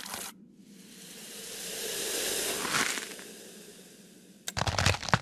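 A metal blade scrapes as it slides out of stone.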